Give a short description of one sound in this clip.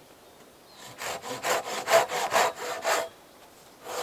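A tool scrapes rhythmically against a wooden log in quick strokes.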